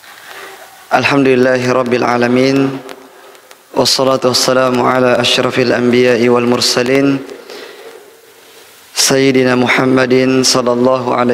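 A young man speaks into a microphone in a slow, chanting voice.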